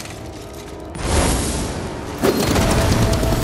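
A sharp whoosh sweeps past.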